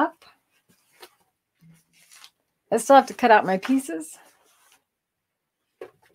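Fabric rustles as a woman handles it.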